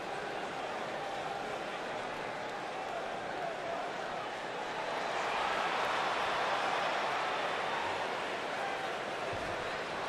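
A large crowd roars and cheers in a big echoing arena, swelling louder for a while.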